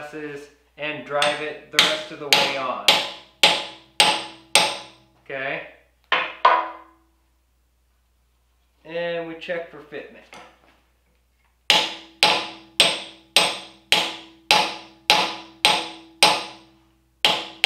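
A hammer strikes metal in quick, ringing blows.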